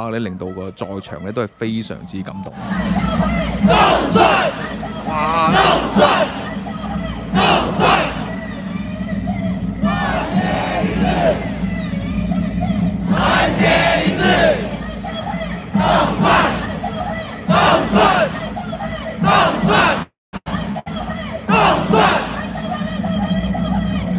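A large crowd cheers and chants loudly outdoors in bursts.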